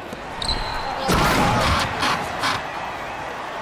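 A crowd cheers loudly after a basket.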